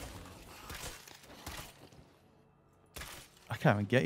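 Heavy blows thud in a close fight.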